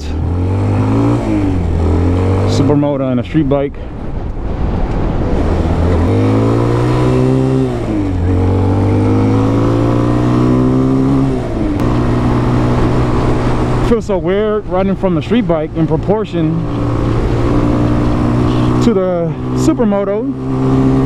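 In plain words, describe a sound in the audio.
A motorcycle engine revs up and down loudly.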